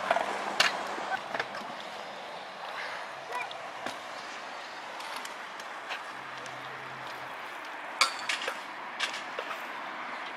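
Scooter wheels roll and grind on concrete.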